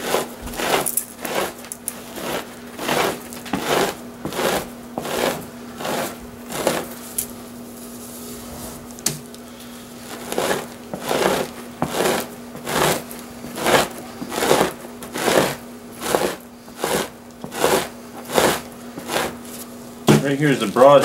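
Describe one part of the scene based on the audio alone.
A draw knife scrapes across a wet hide in steady, rhythmic strokes.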